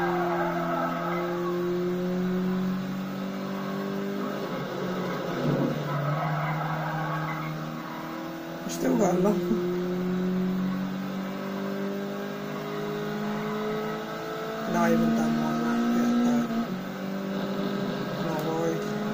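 A racing car engine drones steadily through a television speaker, shifting pitch as the car changes gear.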